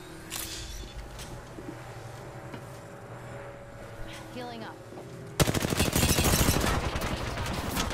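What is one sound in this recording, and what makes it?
Gunfire bursts in short rapid volleys.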